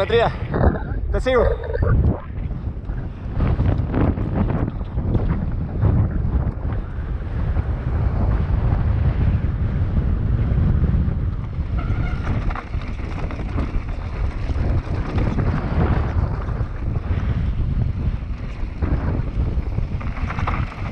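Mountain bike tyres crunch and rattle over a dry dirt trail.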